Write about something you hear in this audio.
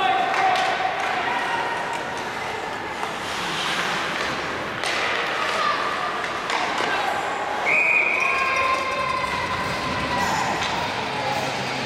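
Young players call out to each other across the rink.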